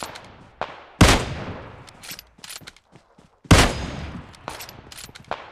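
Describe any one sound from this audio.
A rifle fires loud single shots that echo away.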